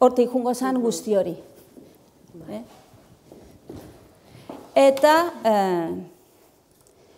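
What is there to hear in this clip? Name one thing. A woman speaks calmly to an audience.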